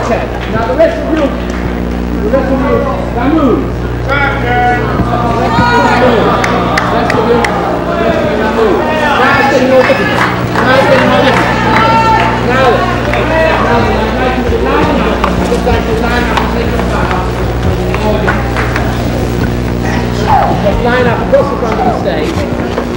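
A crowd of people chatters and shouts excitedly close by.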